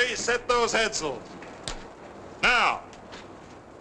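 A man shouts orders loudly.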